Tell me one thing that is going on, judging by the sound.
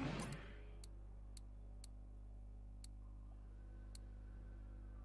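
Short electronic menu clicks tick now and then.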